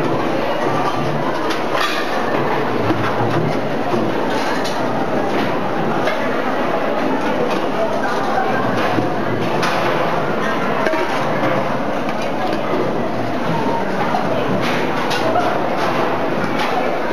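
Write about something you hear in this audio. A crowd of people chatters in a busy room.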